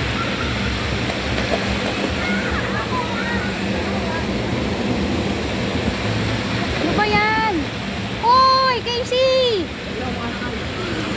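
Water splashes and churns steadily outdoors.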